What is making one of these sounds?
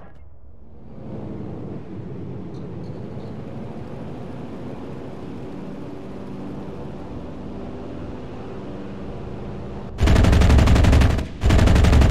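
A propeller plane engine drones steadily.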